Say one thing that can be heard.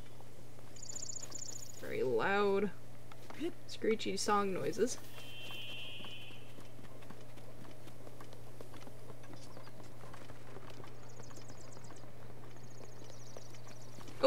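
Quick footsteps patter over grass and then thud on wooden planks.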